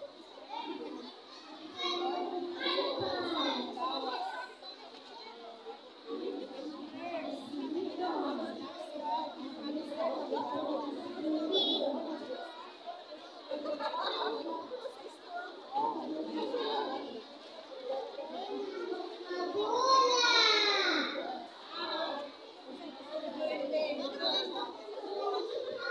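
A crowd of young children chatter and call out outdoors.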